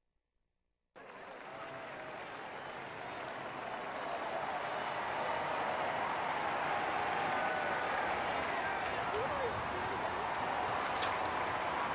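A roadside crowd cheers steadily.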